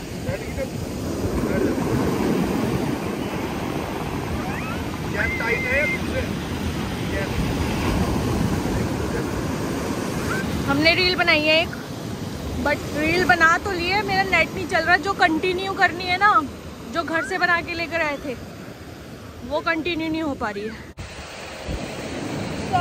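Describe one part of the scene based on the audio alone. Waves wash and break on the shore.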